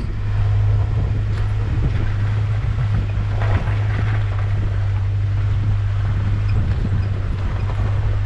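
An off-road vehicle's engine hums steadily as it drives.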